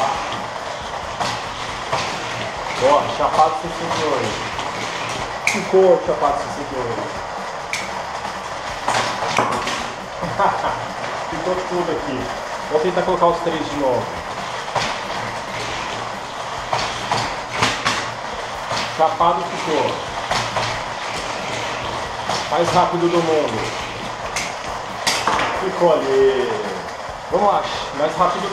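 Toy cars roll along a plastic track.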